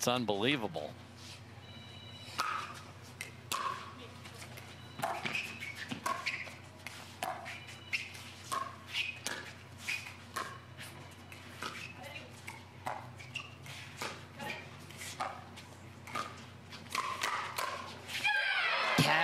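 Paddles strike a plastic ball back and forth in a quick rally.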